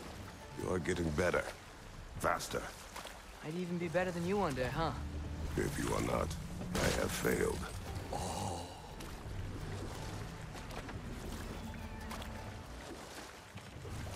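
Oars splash and paddle through water.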